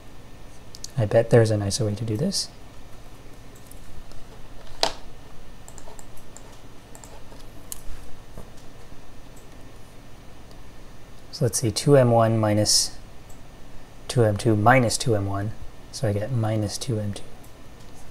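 A young man speaks calmly and close to a microphone, in short phrases.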